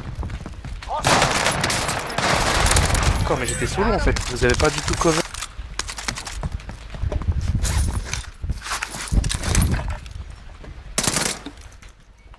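Rapid gunshots ring out in bursts.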